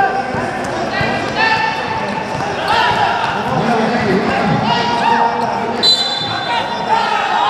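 Sneakers squeak on an indoor basketball court.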